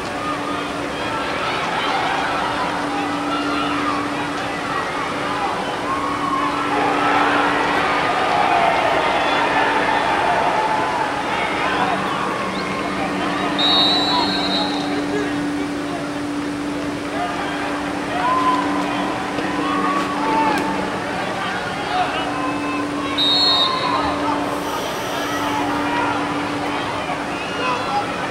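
A sparse crowd chatters and calls out in an open-air stadium.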